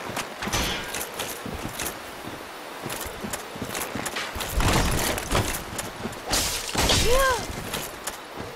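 Armored footsteps crunch and clank over soft ground.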